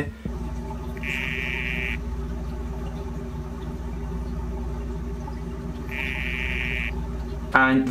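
A frog gives short, steady buzzing calls.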